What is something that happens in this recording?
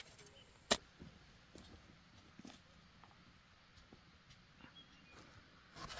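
Footsteps crunch softly on loose soil.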